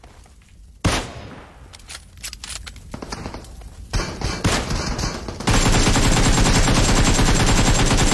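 Rifle shots crack in a video game.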